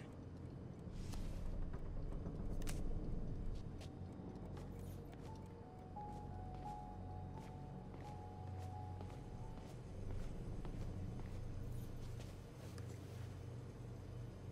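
Footsteps tread slowly on a hard floor.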